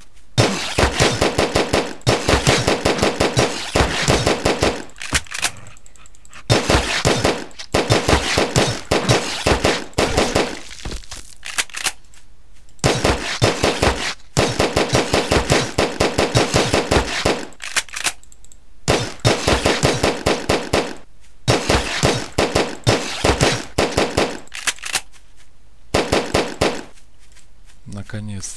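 A rapid-fire gun shoots in quick, loud bursts.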